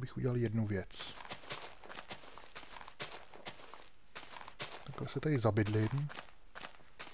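A shovel digs into dirt with quick crunching scrapes.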